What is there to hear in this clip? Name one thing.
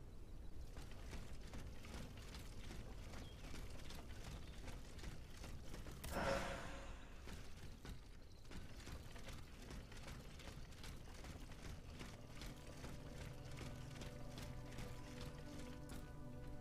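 Footsteps run steadily over gravel.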